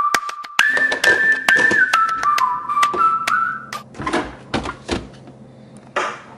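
A plastic container lid clicks and snaps.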